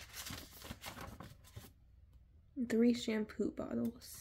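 A paper sheet rustles and crinkles close by.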